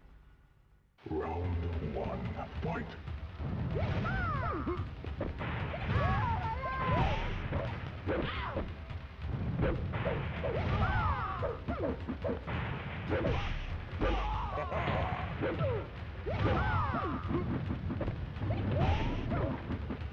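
Game fighters grunt and shout as they battle.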